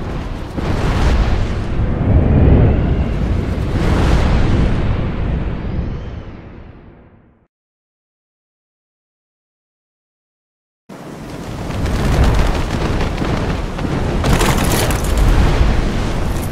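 Large bird wings beat heavily through the air.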